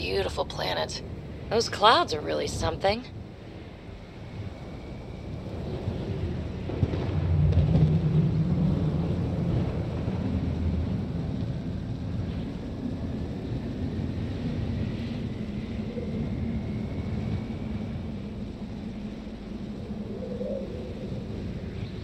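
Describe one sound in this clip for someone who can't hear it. Wind howls in a snowstorm.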